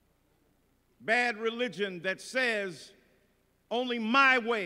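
A middle-aged man preaches forcefully into a microphone in a large hall, pausing between phrases.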